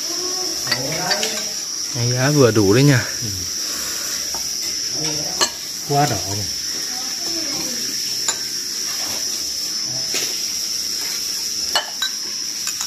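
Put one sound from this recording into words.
A metal spoon clinks against small ceramic bowls.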